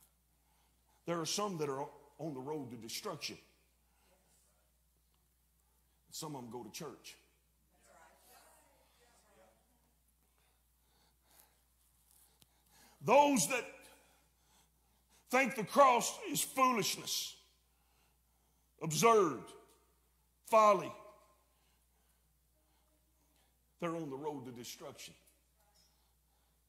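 A middle-aged man preaches through a microphone in emphatic bursts with long pauses.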